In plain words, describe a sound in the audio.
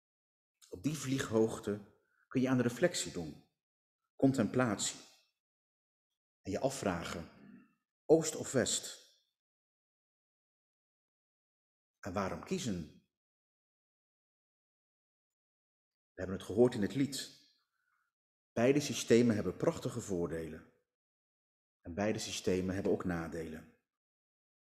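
A man speaks calmly through a microphone in short phrases, with pauses between them.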